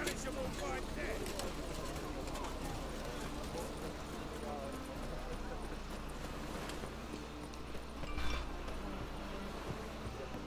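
Footsteps run quickly over stone and wooden boards.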